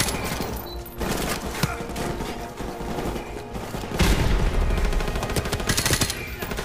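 Rapid gunfire rattles and echoes in a tunnel.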